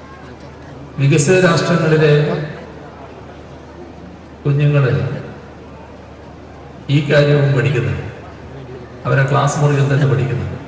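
An elderly man speaks slowly and firmly into a microphone over loudspeakers, with pauses between phrases.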